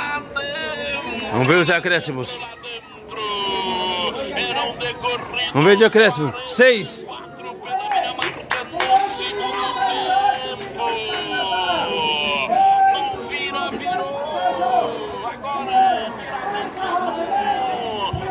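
A man close by shouts and cheers with excitement.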